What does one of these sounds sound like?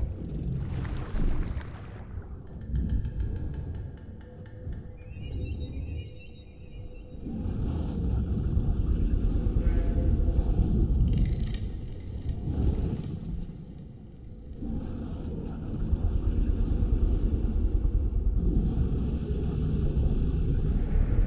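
Deep underwater rumbling and churning go on throughout.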